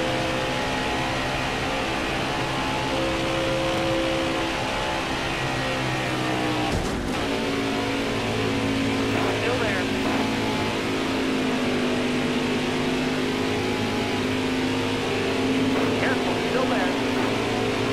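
Other stock cars roar past close by.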